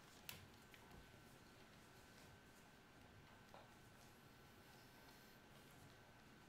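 Calculator keys click softly as they are pressed.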